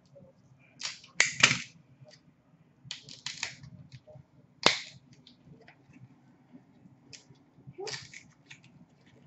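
Paper cards rustle and tap as they are handled up close.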